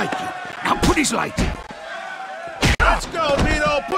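Heavy punches land with loud thuds.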